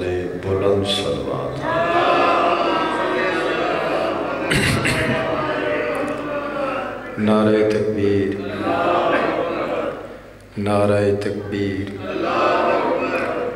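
A man speaks passionately into a microphone, heard through loudspeakers in an echoing space.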